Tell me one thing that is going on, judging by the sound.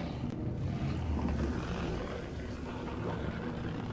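A bloated creature swells with a wet, gurgling stretch.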